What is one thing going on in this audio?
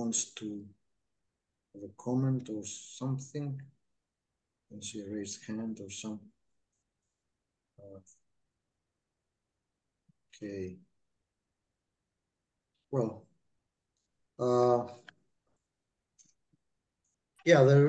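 An elderly man speaks calmly through an online call, in short phrases with pauses.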